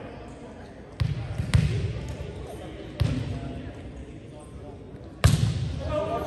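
A volleyball thuds against hands and bounces in a large echoing gym.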